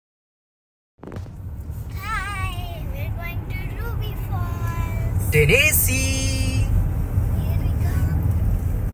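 A car engine hums steadily with road rumble.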